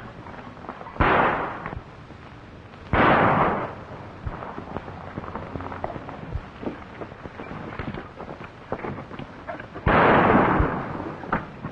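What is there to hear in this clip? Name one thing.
Gunshots crack loudly outdoors, each followed by a short echo.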